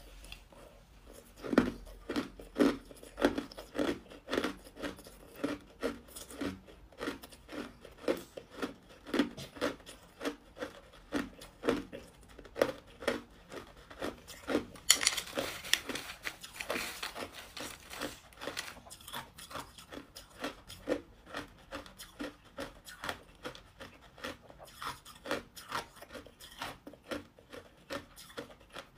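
A young woman crunches ice loudly and steadily, close by.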